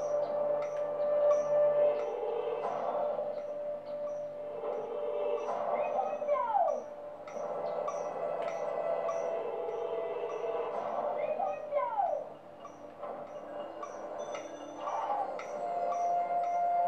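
Game music plays steadily with a light, ticking beat.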